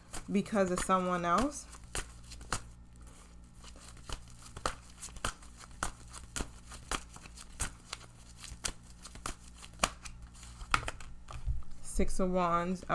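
Paper bills rustle and flick in quick succession.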